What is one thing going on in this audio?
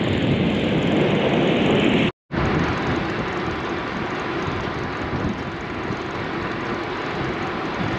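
Tyres roar steadily on a smooth road.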